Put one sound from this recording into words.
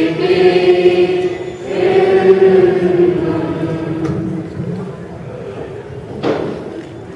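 A man sings slowly through a microphone and loudspeaker in an echoing hall.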